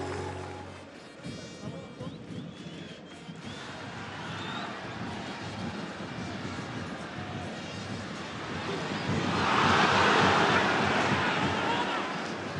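A large stadium crowd murmurs and cheers throughout.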